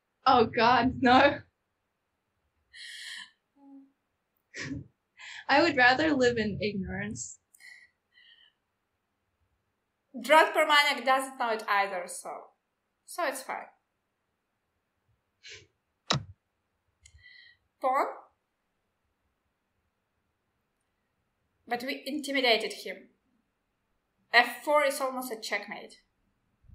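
A second young woman talks cheerfully over an online call.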